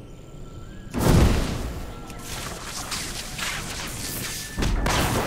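Blows and spell bursts crash loudly in a fight.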